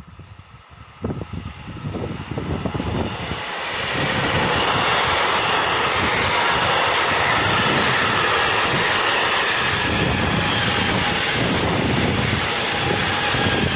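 A freight train approaches and rumbles loudly past, close by.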